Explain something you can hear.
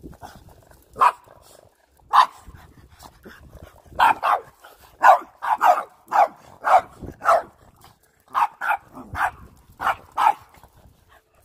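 Small dogs bark sharply and excitedly, close by.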